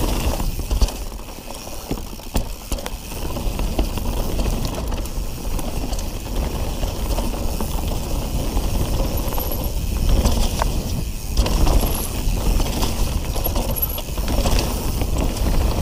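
Wind rumbles past the rider.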